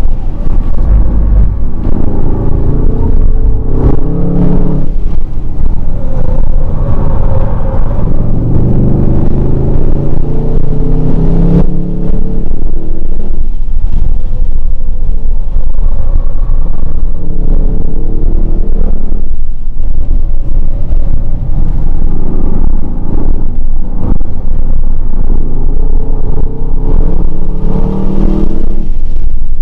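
A powerful car engine roars as the car speeds along.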